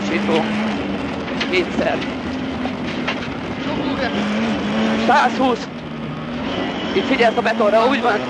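A man close by calls out notes quickly over the engine noise.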